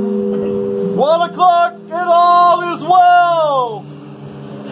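A man sings out loudly close by, in a long drawn-out voice.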